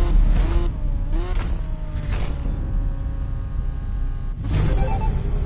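A sports car engine idles with a low rumble.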